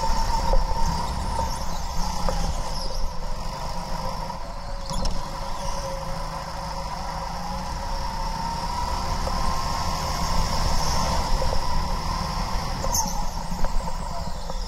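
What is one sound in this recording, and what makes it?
A small kart engine buzzes loudly up close, its pitch rising and falling with the throttle.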